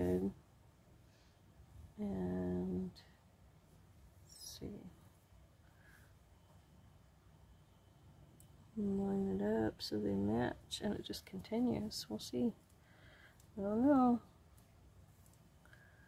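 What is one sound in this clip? Paper rustles softly as fingers press along it.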